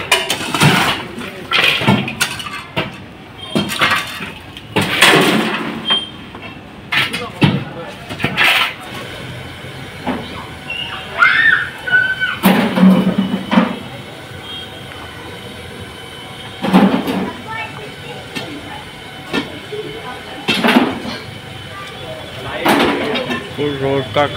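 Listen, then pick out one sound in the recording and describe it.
A shovel scrapes and digs into rubble.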